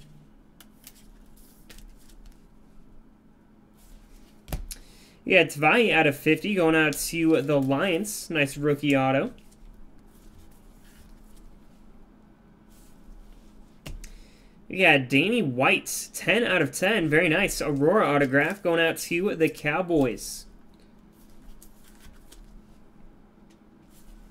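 Plastic card cases click and rustle as hands handle them.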